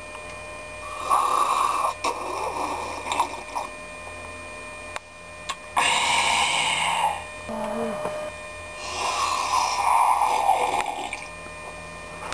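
A man loudly slurps a drink.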